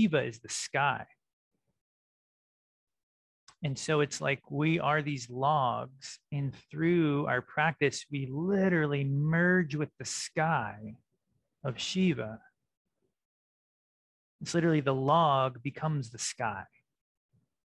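A man speaks calmly and with animation close to a microphone, pausing between phrases.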